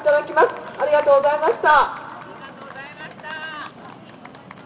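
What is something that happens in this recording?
A man speaks loudly into a microphone through a loudspeaker outdoors.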